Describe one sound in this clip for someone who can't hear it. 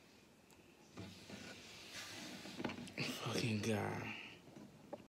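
A young man speaks casually, close up.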